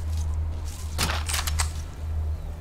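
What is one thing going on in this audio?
Gear and a weapon rattle as they are picked up close by.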